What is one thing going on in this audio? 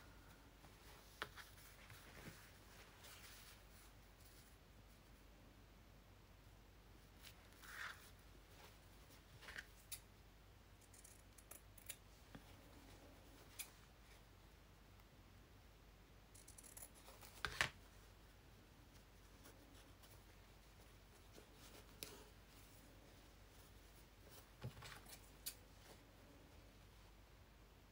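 Fabric rustles and crinkles as hands handle it.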